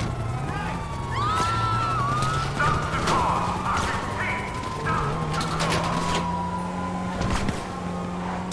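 A sports car engine revs and accelerates through the gears.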